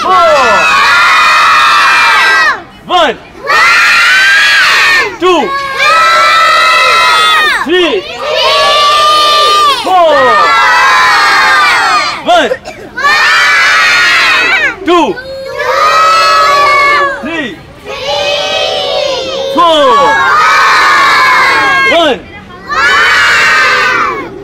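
A group of young children chant loudly together in rhythmic bursts.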